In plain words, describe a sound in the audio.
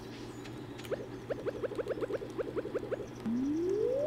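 A rapid ticking builds up as a fishing rod is drawn back.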